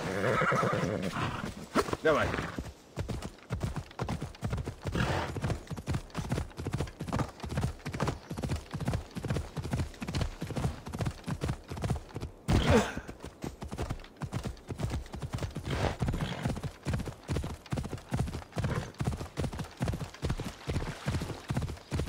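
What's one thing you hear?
A horse's hooves gallop quickly over grassy ground.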